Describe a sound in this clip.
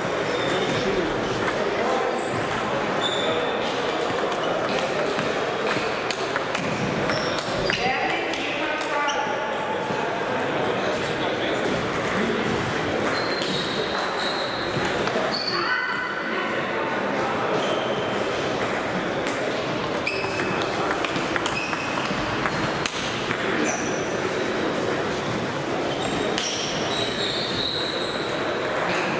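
Table tennis balls click sharply against paddles and tables in a large echoing hall.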